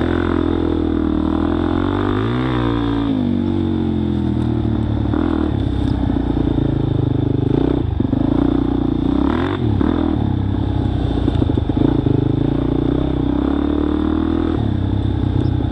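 Tyres crunch over dry leaves and twigs.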